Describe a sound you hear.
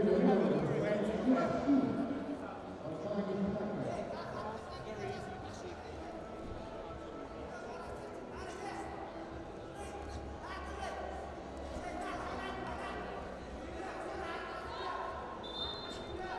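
A crowd murmurs and calls out in a large echoing hall.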